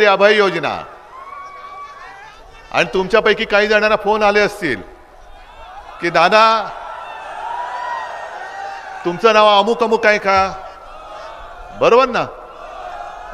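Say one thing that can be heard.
A middle-aged man speaks forcefully through a loudspeaker in short bursts, with pauses between them.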